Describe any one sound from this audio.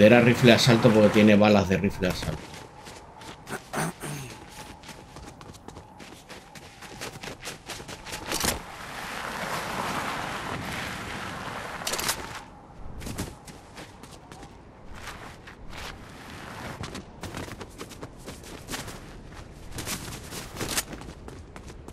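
Footsteps crunch quickly through snow and over rock.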